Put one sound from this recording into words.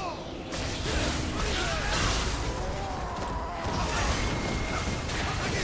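Weapons clash and hit repeatedly.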